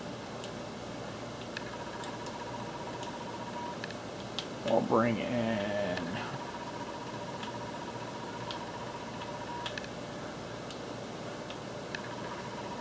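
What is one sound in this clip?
Short electronic interface clicks sound as a video game menu is navigated.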